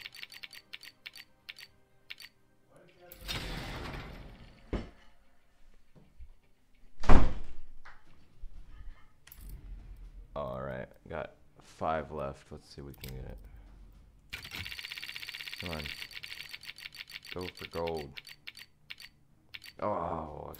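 Rapid game clicks tick and slow down as a prize reel spins.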